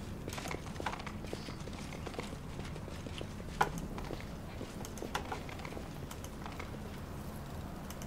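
Footsteps tread softly on stone.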